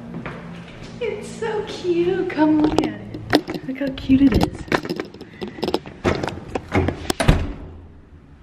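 A young woman laughs and talks excitedly close by.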